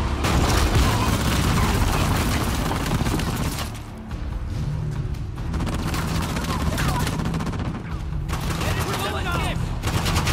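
Gunfire rattles in bursts nearby.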